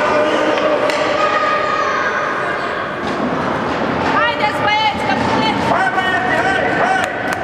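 Hockey sticks clack against the ice.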